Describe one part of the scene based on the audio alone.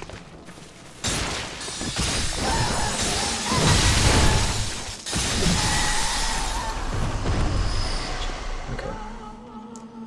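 A monster roars loudly during a fight.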